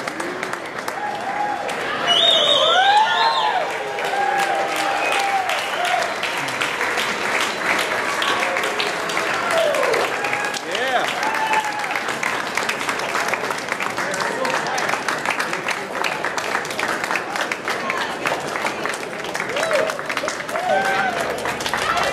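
Men and women in a crowd whoop and shout excitedly.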